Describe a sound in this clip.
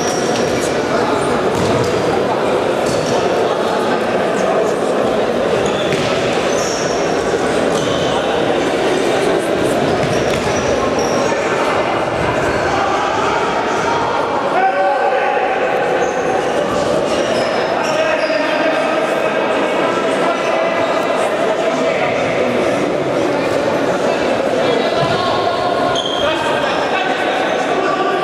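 Men shout and call out across an echoing hall.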